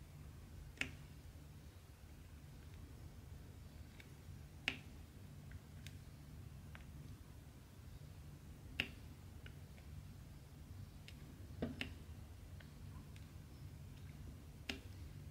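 A pen tool taps small plastic beads into place with light clicks.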